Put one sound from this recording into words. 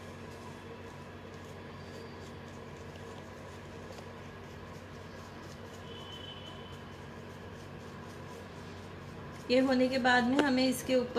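Fingers scrape softly over soft clay.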